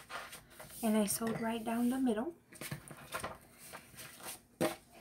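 Paper slides and rustles on a hard surface.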